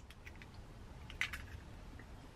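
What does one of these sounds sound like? An egg cracks against a metal bowl.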